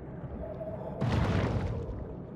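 Bubbles burst and gurgle underwater.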